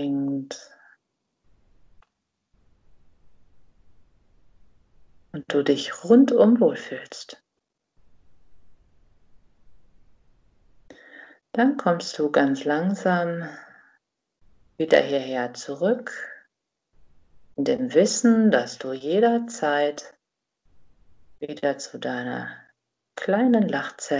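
A woman speaks calmly and clearly close to a microphone, with pauses between phrases.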